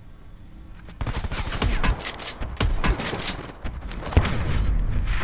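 An automatic rifle fires a burst of gunshots.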